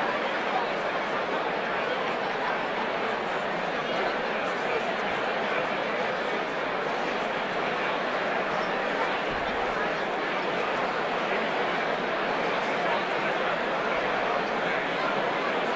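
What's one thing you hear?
A large crowd of men and women chatters all around in a big echoing hall.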